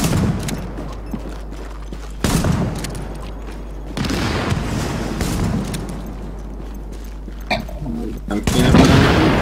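Gunfire crackles in short bursts.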